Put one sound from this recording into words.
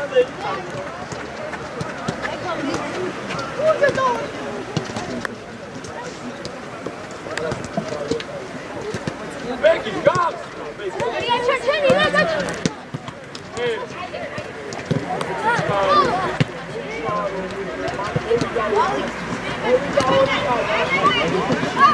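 Children shout and call out to each other across an open outdoor field.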